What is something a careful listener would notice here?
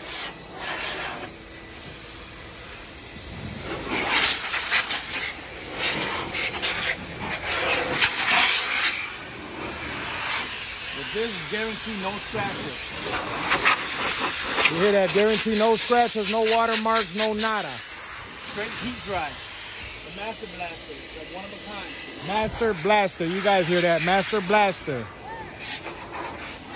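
A powerful air blower roars steadily.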